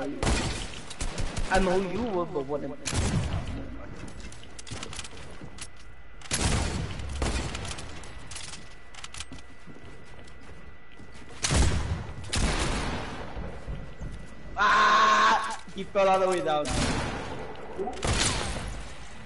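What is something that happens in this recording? Gunshots fire in short bursts.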